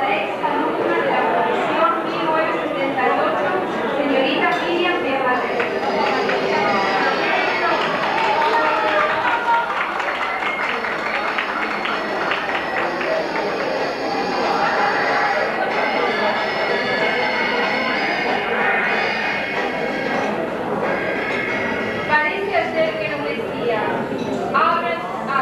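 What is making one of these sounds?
A woman reads out through a microphone in an echoing hall.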